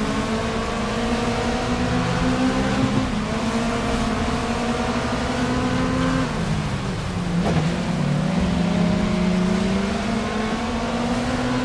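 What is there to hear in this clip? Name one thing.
A racing car engine roars loudly, revving up and shifting gears.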